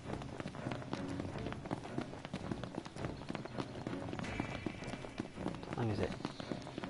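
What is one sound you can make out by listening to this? Footsteps pound quickly on a paved road.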